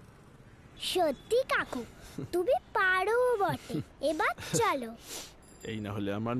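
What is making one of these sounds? A young girl speaks cheerfully close by.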